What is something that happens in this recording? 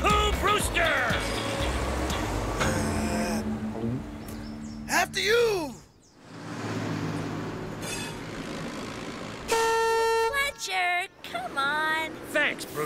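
A cartoon male voice speaks with animation.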